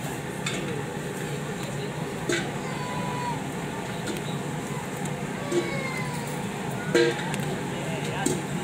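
Skewered seafood sizzles on a hot grill.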